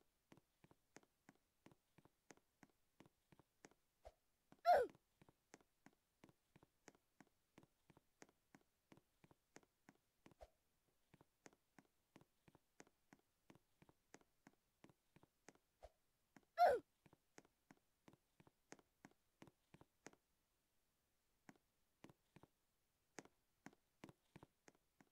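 Quick game footsteps patter steadily, stopping briefly now and then.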